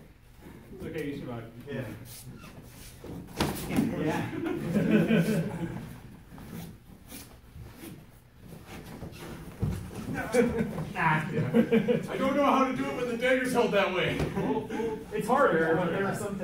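Bare feet shuffle on a padded mat.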